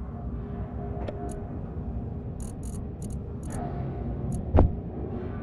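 Soft interface clicks tick in quick bursts.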